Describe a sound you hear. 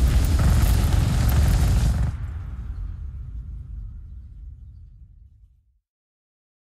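A deep, loud rumbling roar booms, then slowly fades away.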